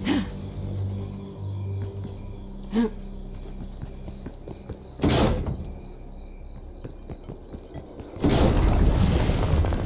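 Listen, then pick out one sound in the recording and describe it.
Footsteps tread on grass and stone.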